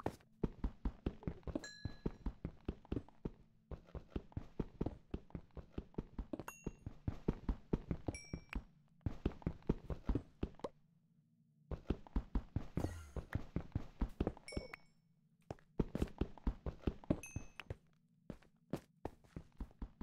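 A pickaxe chips rapidly at stone, in quick bursts of knocks.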